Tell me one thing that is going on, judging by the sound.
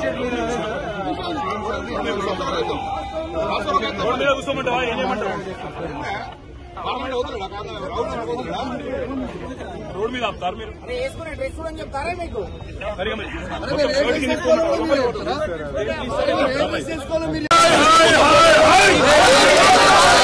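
A crowd of men talks and shouts all around, close by, outdoors.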